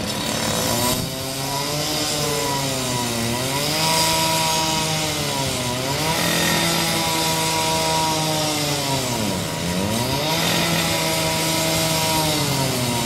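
A bus engine whines, rising and falling in pitch as a bus drives off.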